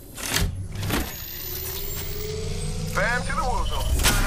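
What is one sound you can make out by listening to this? An electric charging device hums with a rising whine.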